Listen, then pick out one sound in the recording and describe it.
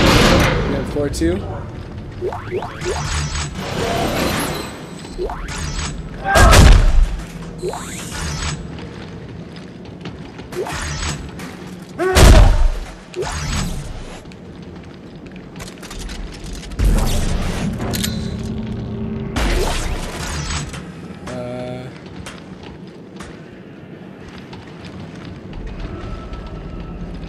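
Heavy boots clank on a metal floor.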